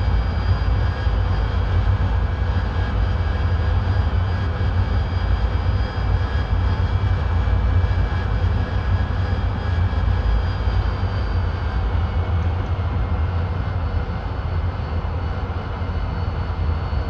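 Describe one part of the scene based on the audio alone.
A jet engine roars steadily, with a high whine.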